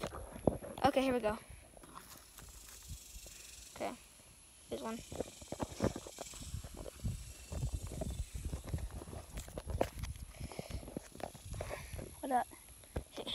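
A boy speaks close to the microphone in short bursts.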